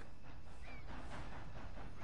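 A horse's hooves thud softly on grass.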